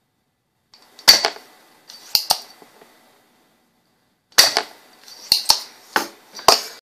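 A metal tool clicks and taps against a circuit board.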